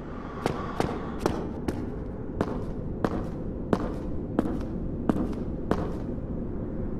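Bare feet patter on stone in an echoing passage.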